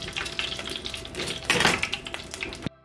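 A metal fork clatters down onto a hard surface.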